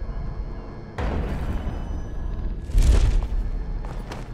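A body lands hard on the ground with a heavy thud.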